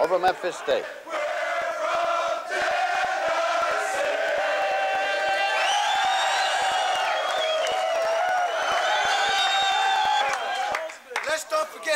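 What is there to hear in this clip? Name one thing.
A crowd of young men cheers and sings loudly together.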